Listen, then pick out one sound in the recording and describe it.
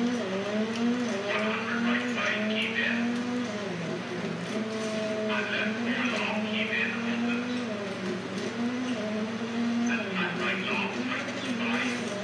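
A rally car engine revs up and drops as it shifts gears.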